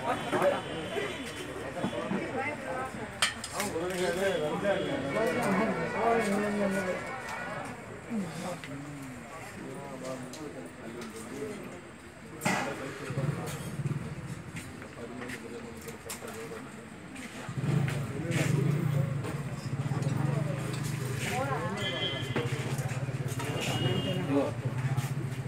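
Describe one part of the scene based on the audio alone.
Women chat quietly nearby.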